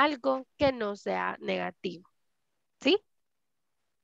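A young woman speaks clearly through an online call.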